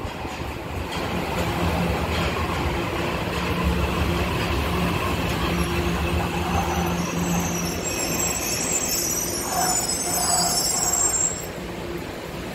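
A subway train rumbles into the station and slows to a stop.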